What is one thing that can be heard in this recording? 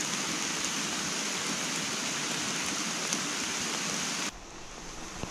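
A stream trickles softly over rocks.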